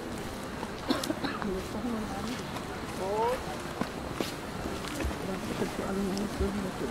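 Several adults and children talk nearby outdoors.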